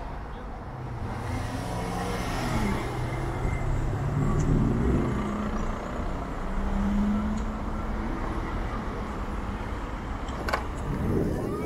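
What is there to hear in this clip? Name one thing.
A motorcycle's motor hums low while it waits.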